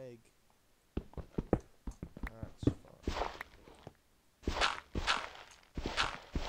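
A shovel crunches into loose dirt.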